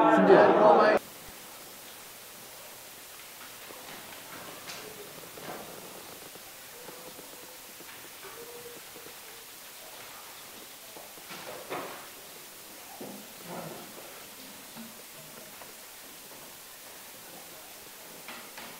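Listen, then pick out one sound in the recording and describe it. Pens scratch quietly on paper in a hushed room.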